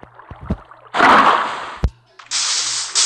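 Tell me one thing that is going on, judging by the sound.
Water gushes and splashes.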